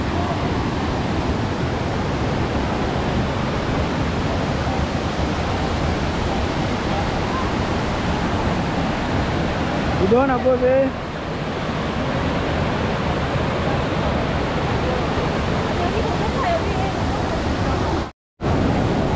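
Water rushes loudly down a waterfall.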